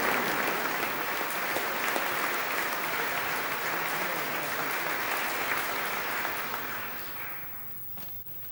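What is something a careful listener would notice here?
A large audience applauds in an echoing hall, then the applause dies away.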